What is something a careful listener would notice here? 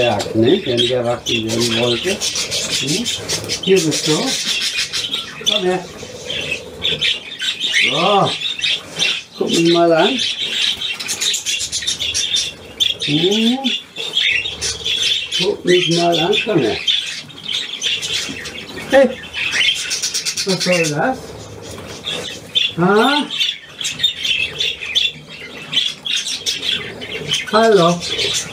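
An elderly man talks.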